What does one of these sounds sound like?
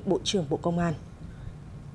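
A young woman reads out the news calmly through a microphone.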